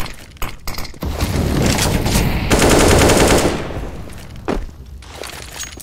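A smoke grenade bursts and hisses loudly.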